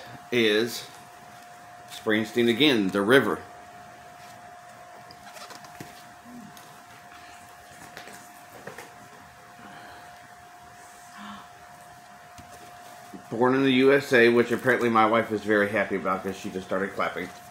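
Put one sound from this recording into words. A record sleeve rustles in a man's hands.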